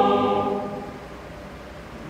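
A choir finishes singing in a large hall.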